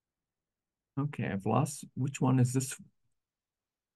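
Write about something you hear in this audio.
A man speaks briefly and calmly into a microphone.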